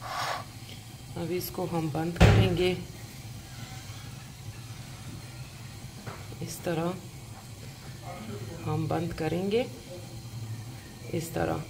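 A soft tortilla rustles as hands fold it.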